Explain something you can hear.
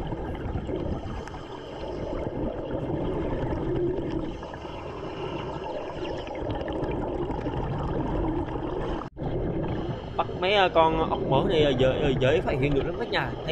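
Muffled water rushes and rumbles steadily underwater.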